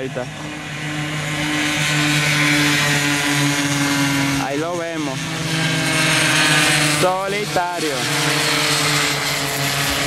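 Small motorbike engines drone loudly and steadily nearby.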